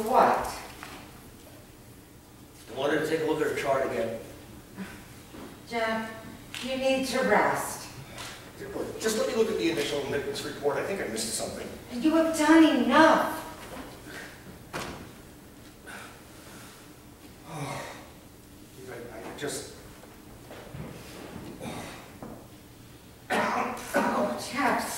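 A man speaks in a reverberant hall.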